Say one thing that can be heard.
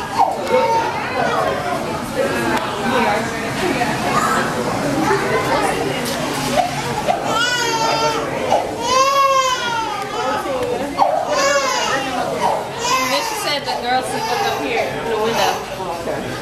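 A crowd of people chatters and squeals loudly nearby.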